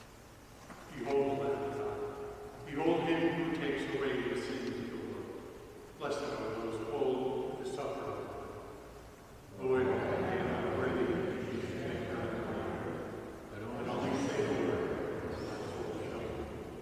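A man chants slowly through a microphone in a large echoing hall.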